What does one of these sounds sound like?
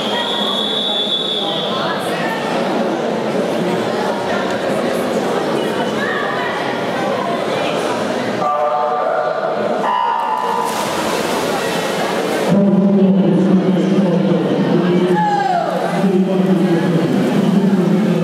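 A crowd of spectators cheers and shouts in a large echoing hall.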